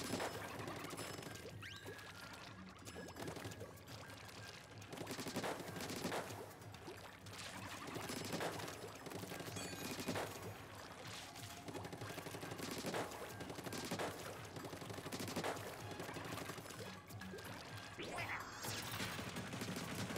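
Ink weapons splat and squirt in quick bursts.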